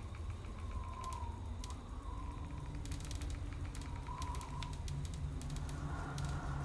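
Short interface clicks tick rapidly as a menu list scrolls.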